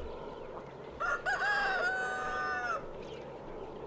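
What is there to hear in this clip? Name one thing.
A rooster crows nearby.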